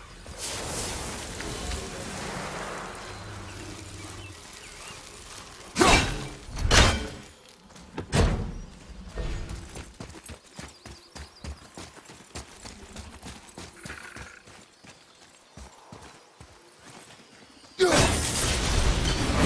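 Heavy footsteps crunch through leaves and grass.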